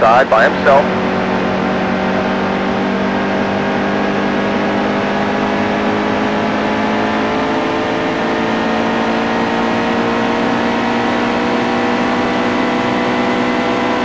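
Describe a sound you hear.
A race car engine roars steadily at high speed, slowly rising in pitch.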